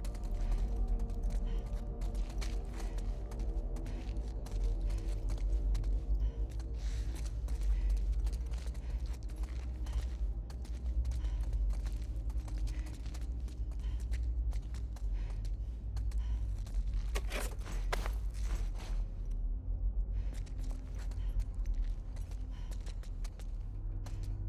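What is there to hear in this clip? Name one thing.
Footsteps shuffle slowly over a gritty floor.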